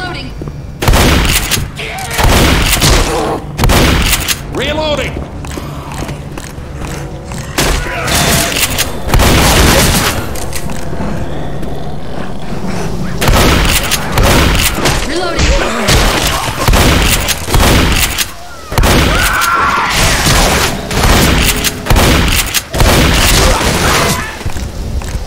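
Shotgun blasts boom again and again.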